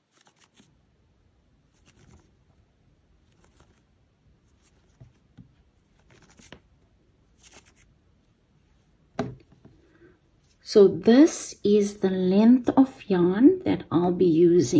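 Yarn rustles softly as hands handle it.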